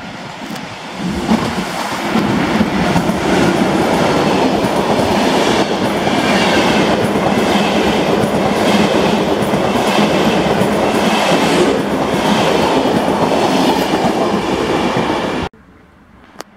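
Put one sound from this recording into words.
A passenger train rushes past close by with a loud rumbling roar.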